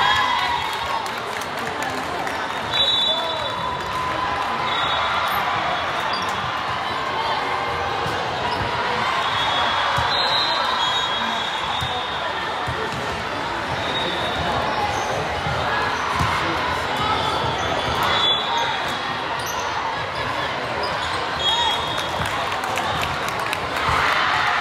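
A crowd murmurs and chatters throughout a large echoing gym.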